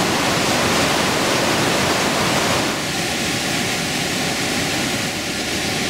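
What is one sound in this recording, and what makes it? A river rushes loudly through a narrow rocky gorge.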